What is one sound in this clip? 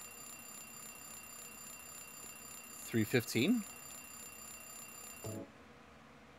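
An alarm clock rings with a steady high tone, then stops.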